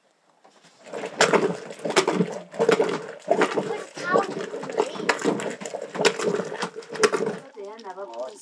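A wooden plunger thumps and sloshes rhythmically in a churn.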